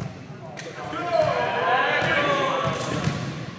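Young men shout and cheer together.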